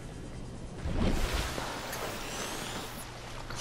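Water splashes as a small submarine breaks the surface.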